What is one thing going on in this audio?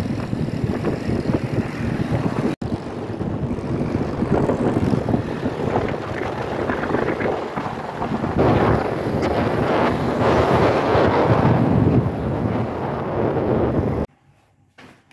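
Wind rushes loudly past a riding motorbike.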